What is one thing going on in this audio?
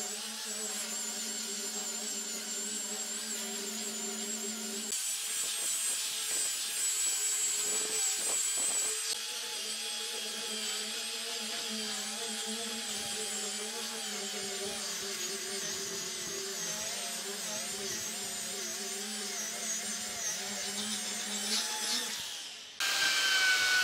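A sanding tool whines steadily against wood.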